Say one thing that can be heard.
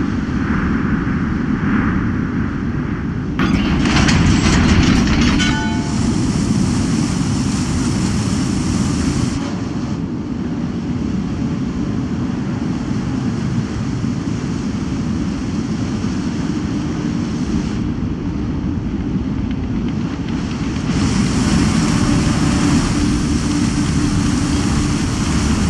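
A large ship's engine rumbles deeply and steadily.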